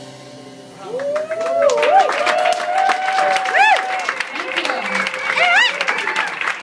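Drums are struck with quick hits on cymbals and snare.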